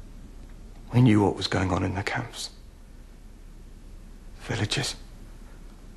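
A man speaks tensely in short bursts, close by.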